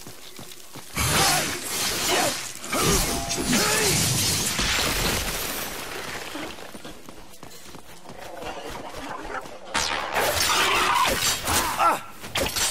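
Blows land with heavy thuds.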